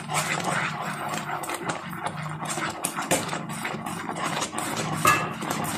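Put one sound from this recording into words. A wooden spoon scrapes and stirs in a pan.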